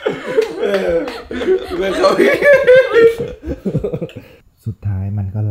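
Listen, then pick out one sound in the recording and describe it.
A young woman laughs nearby.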